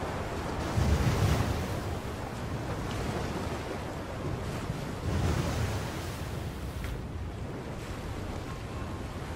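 Rough waves surge and crash with a deep roar.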